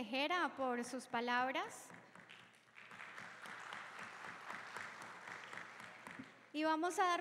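A young woman whoops and cheers loudly.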